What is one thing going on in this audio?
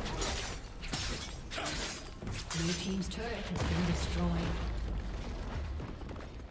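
Fantasy battle effects crackle and burst in quick bursts.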